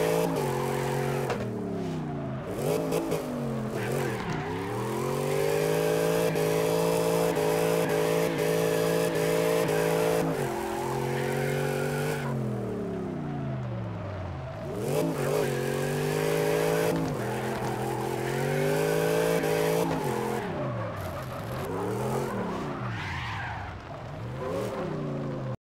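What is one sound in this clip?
A race car engine revs high and drops in pitch as the car shifts gears.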